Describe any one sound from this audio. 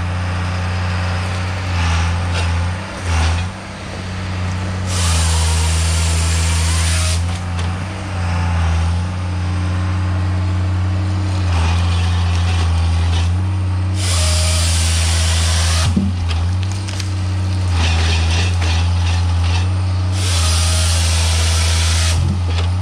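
A heavy diesel engine rumbles steadily close by, rising and falling as it works.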